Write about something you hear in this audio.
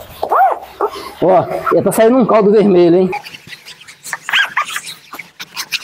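A sponge scrubs and rubs across floor tiles.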